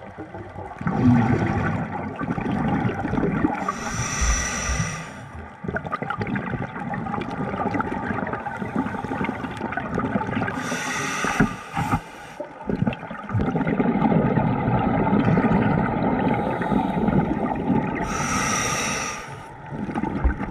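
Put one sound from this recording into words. Bubbles from a diver's breathing gurgle and rumble underwater in bursts every few seconds.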